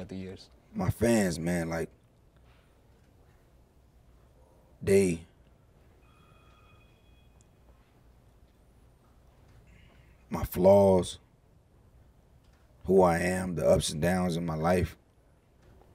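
A man speaks into a microphone in short bursts, with pauses between.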